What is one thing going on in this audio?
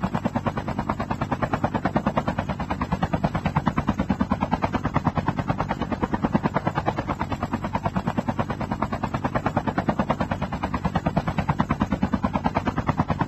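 Helicopter rotor blades chop rapidly and steadily close by.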